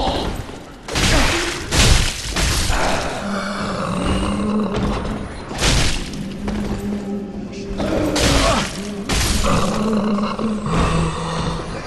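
Blades slash and strike with heavy, sudden impacts.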